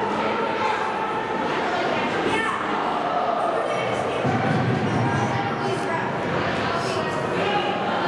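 Spectators chatter and call out from the stands.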